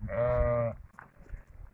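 A sheep bleats loudly close by.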